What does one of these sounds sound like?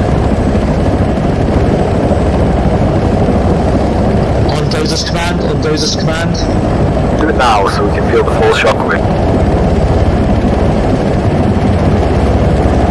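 A helicopter engine and rotor roar steadily from inside the cabin.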